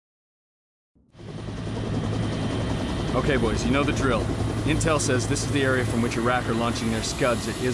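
A helicopter's rotors thump and drone steadily overhead.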